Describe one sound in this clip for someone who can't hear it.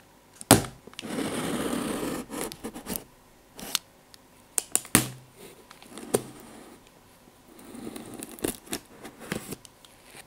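Gloved hands rub across a cardboard box with a soft brushing sound.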